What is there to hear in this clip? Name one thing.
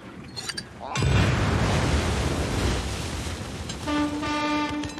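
A large explosion booms and rumbles across the water.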